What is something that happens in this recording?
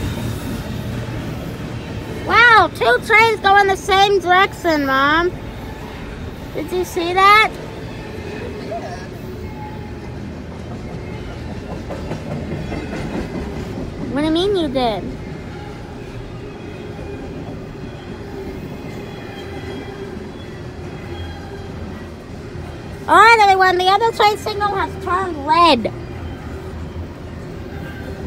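A long freight train rumbles and clatters steadily past.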